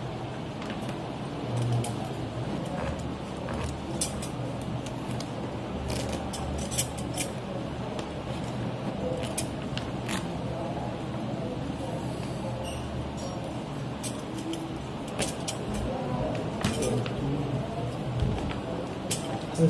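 Bandage scissors snip through a plaster bandage with short crisp clicks.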